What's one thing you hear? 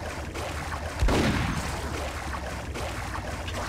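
A pistol fires a single shot that echoes through a tunnel.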